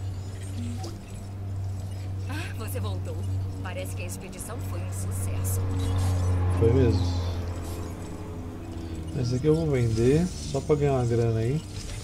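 Soft interface clicks and chimes sound as menus open.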